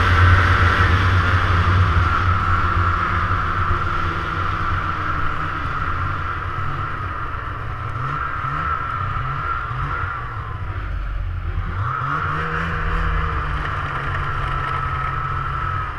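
Snow hisses under a snowmobile's track.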